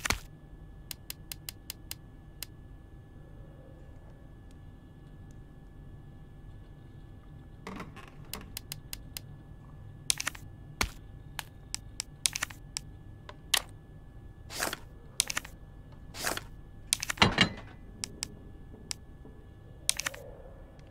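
Short soft menu clicks and blips tick as items are picked.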